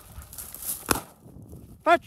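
A shotgun fires a single sharp blast outdoors.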